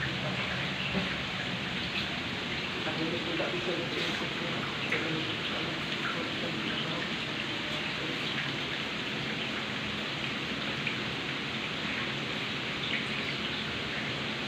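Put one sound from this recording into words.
Water flows and splashes steadily over rocks close by.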